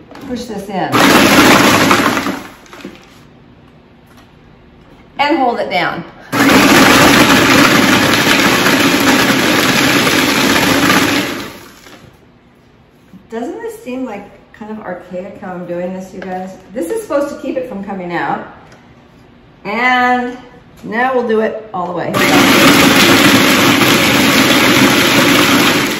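A food processor whirs loudly in bursts.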